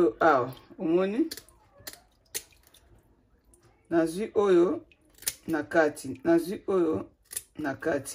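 Scissors snip through fish.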